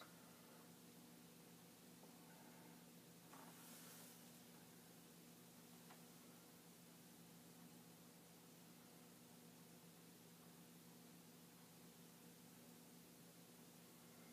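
Computer equipment hums steadily and quietly.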